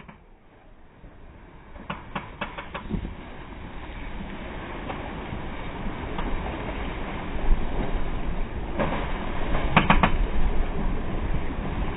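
Wind blows hard, rumbling outdoors.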